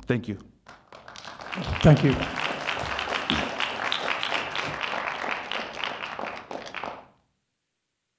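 An audience applauds in a large room and then falls quiet.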